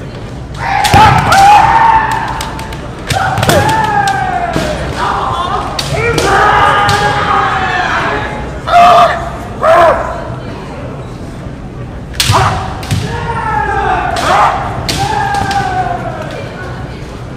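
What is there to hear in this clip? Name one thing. Kendo fighters shout loud drawn-out cries in a large echoing hall.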